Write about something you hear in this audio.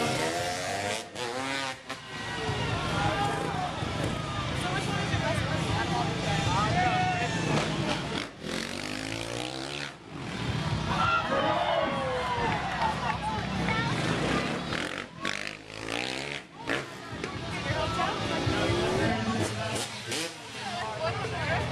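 A motorcycle engine revs loudly and roars past.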